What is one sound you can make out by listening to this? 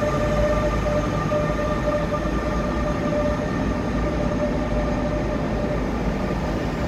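A train's motor whines with a steady high tone.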